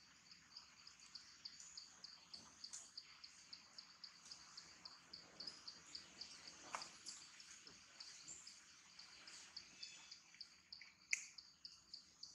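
A monkey rustles leaves as it pulls and eats them.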